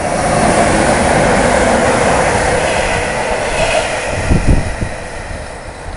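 Train wheels clatter over the rail joints.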